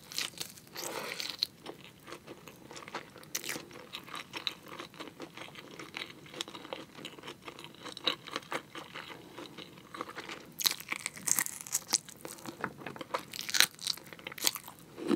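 A young woman chews meat noisily close to a microphone.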